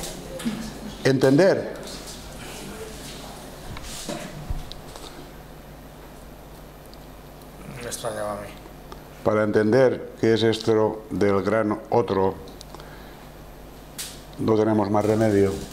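A man speaks calmly into a microphone, in pauses.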